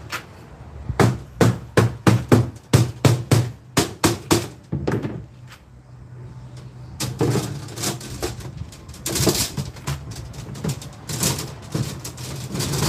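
A wooden mallet knocks on copper tubing.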